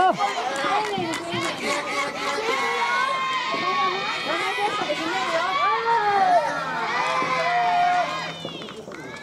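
A crowd of young people shouts and cheers nearby.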